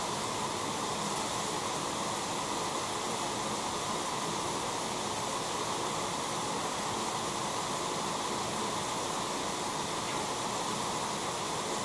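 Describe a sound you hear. Water sloshes gently in a tank as an object is dipped and moved through it.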